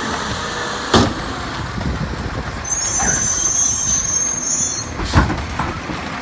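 A plastic bin knocks down onto pavement.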